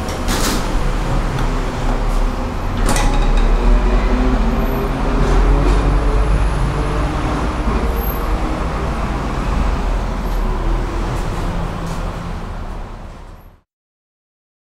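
A traction elevator car rumbles and hums as it travels in the shaft.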